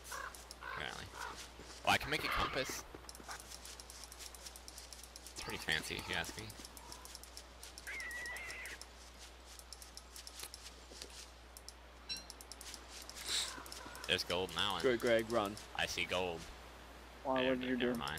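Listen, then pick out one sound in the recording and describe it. Footsteps patter softly on dry grass.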